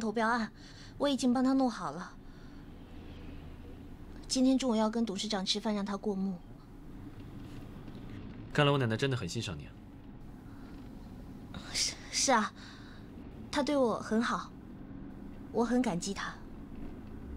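A young woman speaks softly and calmly, close by.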